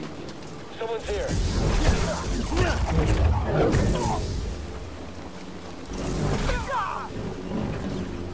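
Lightsabers hum and clash in a video game fight.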